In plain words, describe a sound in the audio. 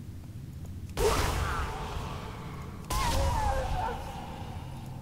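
A magic spell bursts with a loud whooshing blast.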